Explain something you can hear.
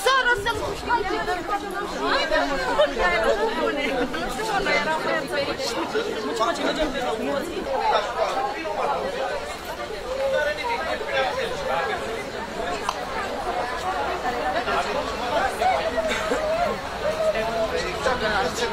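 Footsteps of many people shuffle on pavement.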